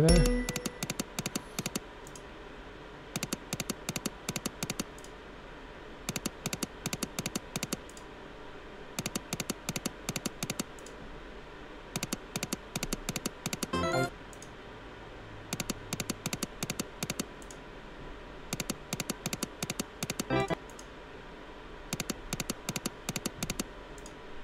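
Slot machine reels spin with rapid clicking ticks, in repeated bursts.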